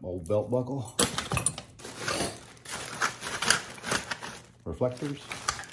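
A plastic bag crinkles and rustles.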